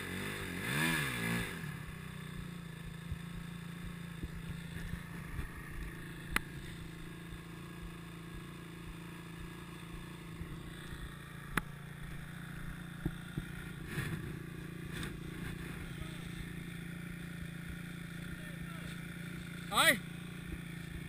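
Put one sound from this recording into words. A motorbike engine idles with a steady low hum.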